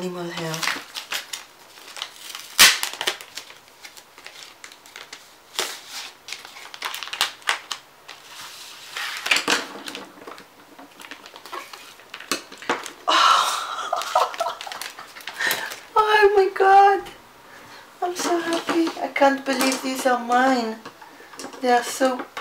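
Plastic packaging rustles and crinkles as it is handled.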